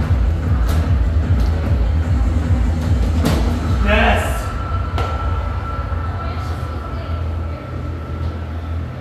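Feet stomp on a dance pad.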